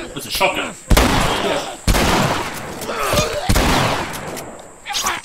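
Gunshots boom loudly.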